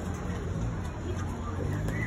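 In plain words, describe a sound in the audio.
People chat nearby outdoors.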